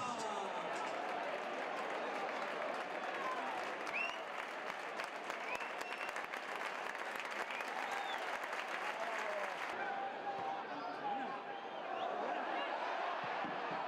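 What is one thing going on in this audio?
A large crowd cheers and chants loudly in a stadium.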